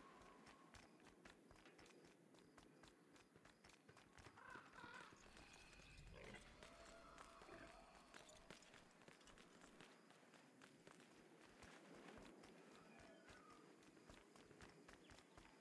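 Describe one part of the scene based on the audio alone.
Quick, light footsteps patter steadily on hard ground.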